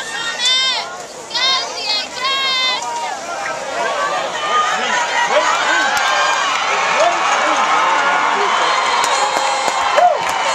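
A crowd of spectators cheers and shouts outdoors, growing louder.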